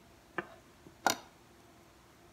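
A crisp pea pod snaps between fingers.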